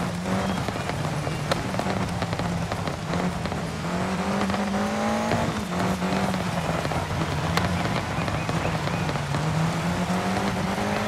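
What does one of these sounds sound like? A car engine roars and revs up and down steadily.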